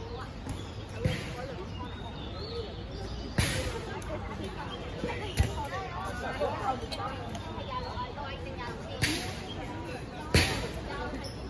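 Balls bounce with sharp thuds on a hard court.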